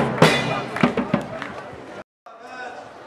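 A drum beats loudly in a crowd.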